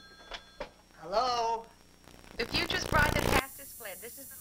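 A young woman speaks excitedly over a telephone.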